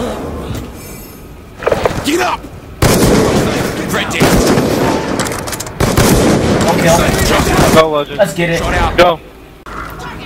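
A rifle fires loud gunshots.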